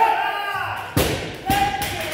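A loaded barbell crashes onto the floor with a heavy thud.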